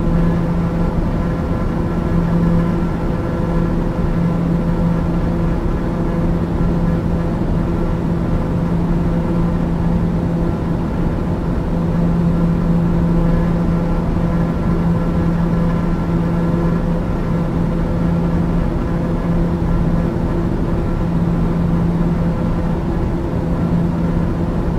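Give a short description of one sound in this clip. A jet engine drones and whines steadily, heard from inside an aircraft cabin.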